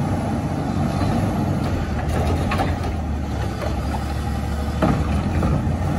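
A bin clatters against a truck's hopper.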